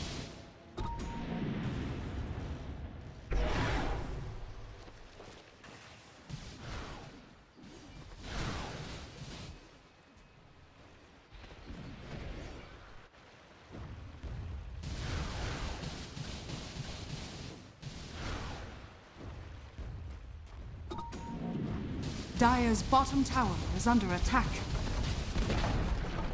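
Magic spells whoosh and crackle in a game battle.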